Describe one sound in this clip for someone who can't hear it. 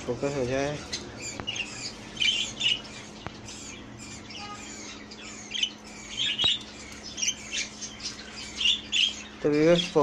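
A small parakeet chirps in short bursts.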